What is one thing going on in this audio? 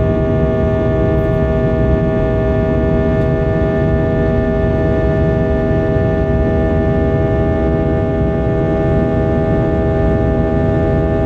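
A jet engine drones and whines steadily, heard from inside an airliner cabin.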